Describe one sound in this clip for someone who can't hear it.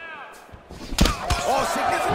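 A kick lands with a heavy thud.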